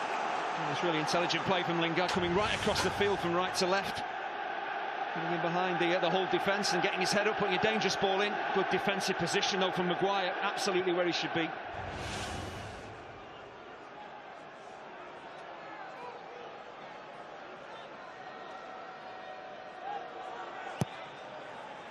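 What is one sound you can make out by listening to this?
A large crowd murmurs and chants in a stadium.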